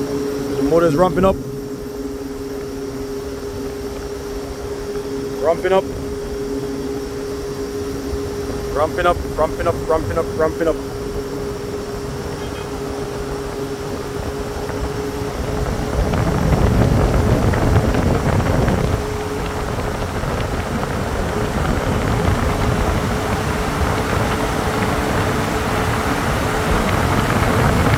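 A fan motor hums steadily.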